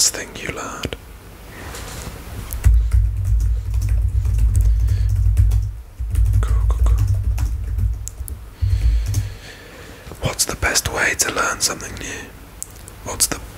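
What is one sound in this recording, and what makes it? A young man whispers close to a microphone.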